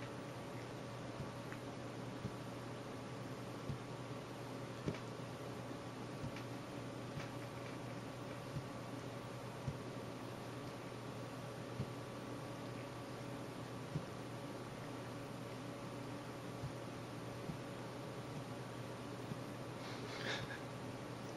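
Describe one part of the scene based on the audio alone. A cat licks its fur with soft, wet licking sounds.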